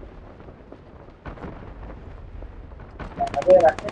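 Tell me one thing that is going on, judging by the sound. A chest creaks open.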